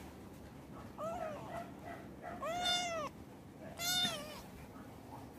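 A kitten meows repeatedly up close.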